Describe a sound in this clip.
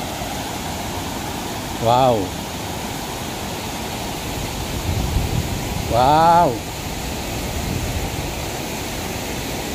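Water rushes steadily over a weir in the distance.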